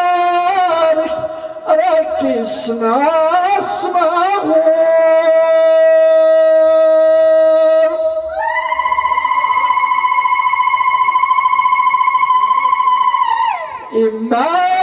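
An elderly man sings loudly into a microphone through a loudspeaker, holding long notes.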